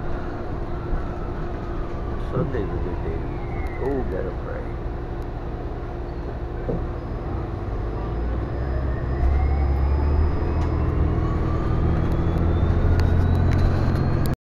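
A bus engine hums and rumbles steadily from inside the bus.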